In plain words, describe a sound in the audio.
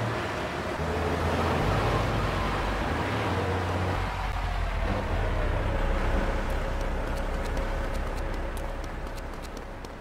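A truck engine drones as the truck drives along.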